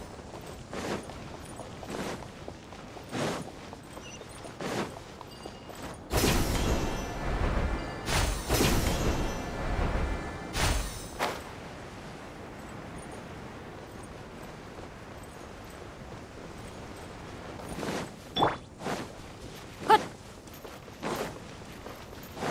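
Footsteps thud on stone at a steady run.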